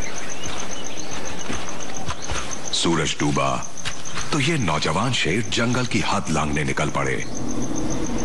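A lion's paws crunch on dry leaves as it walks.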